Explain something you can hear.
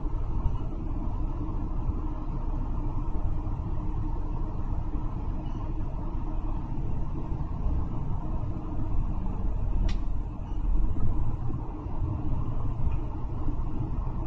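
A bus engine hums low and steady while the bus drives along.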